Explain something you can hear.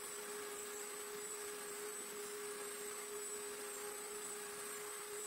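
A router motor whines steadily at high speed.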